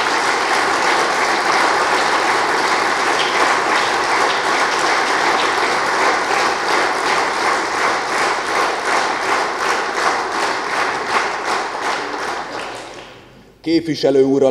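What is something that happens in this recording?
A crowd applauds steadily in a large room, then the clapping fades out.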